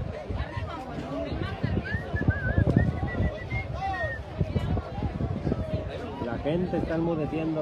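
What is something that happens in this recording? A crowd of spectators chatters and calls out loudly outdoors.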